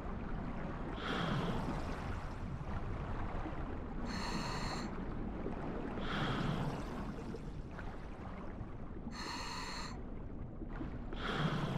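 Swimming strokes swish through water in slow surges.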